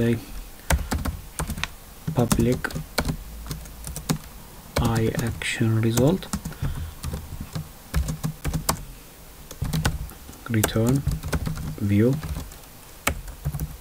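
Keys on a keyboard click in short bursts of typing.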